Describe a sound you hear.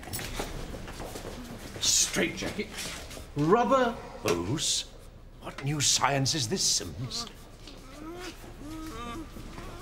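An elderly man speaks sternly, close by.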